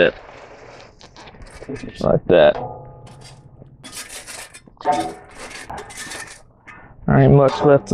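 A metal shovel scrapes and pokes through burning coals.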